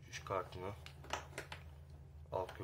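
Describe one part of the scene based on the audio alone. Small parts click softly as they are handled.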